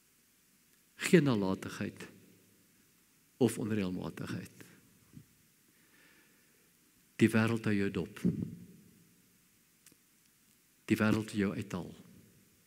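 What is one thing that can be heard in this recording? An elderly man speaks slowly and deliberately through a microphone, in short phrases with pauses.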